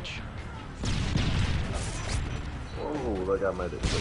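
A grenade blast booms.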